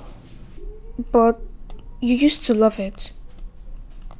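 A woman speaks calmly and close.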